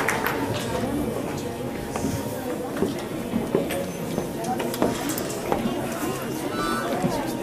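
Several women talk quietly in a large echoing hall.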